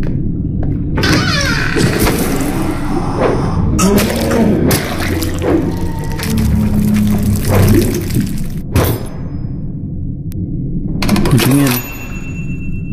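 Thick liquid splashes and splatters loudly.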